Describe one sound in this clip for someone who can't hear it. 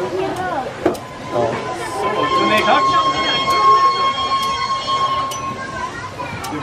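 A steam whistle blows with a steady high tone.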